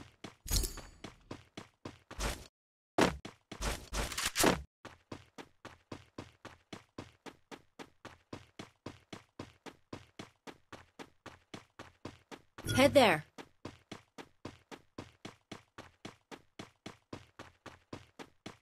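Footsteps patter quickly and evenly on grass.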